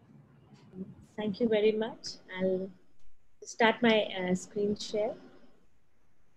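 A woman speaks with animation, heard through an online call.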